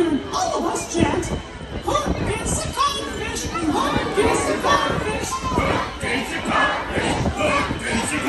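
Loud music with singing plays over loudspeakers outdoors.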